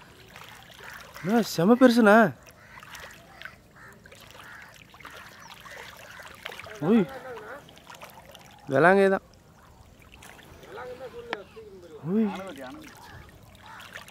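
Water splashes lightly as a snake thrashes in the shallows.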